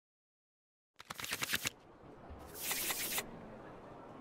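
Playing cards swish and flick as they are dealt.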